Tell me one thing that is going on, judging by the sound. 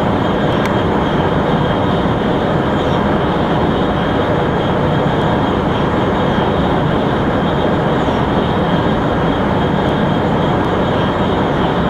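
A high-speed train roars steadily along the rails.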